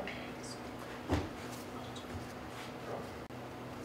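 A card is slid across a soft play mat.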